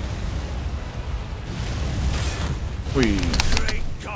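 A fireball bursts with a roar.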